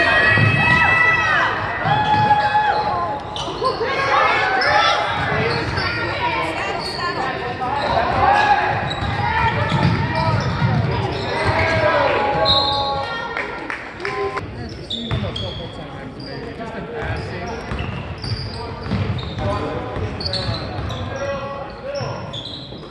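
People nearby chatter and call out.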